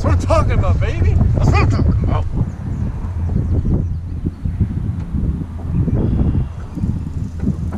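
Wind rumbles outdoors across the microphone.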